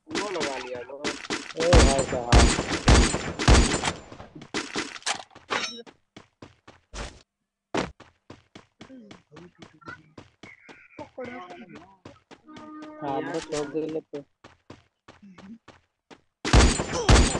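Rifle shots ring out sharply.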